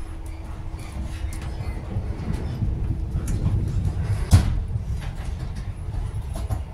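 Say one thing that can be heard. A train's wheels clatter over rail joints.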